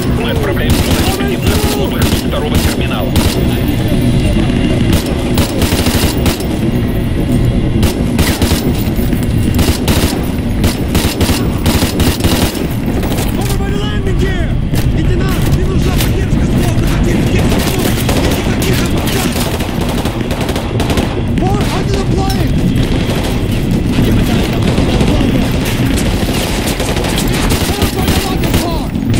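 Rapid bursts of gunfire crack and echo.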